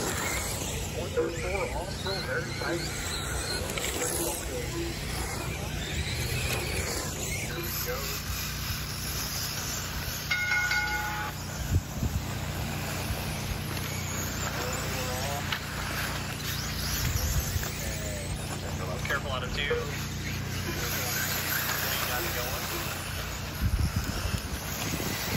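Small remote-control car motors whine as they race past.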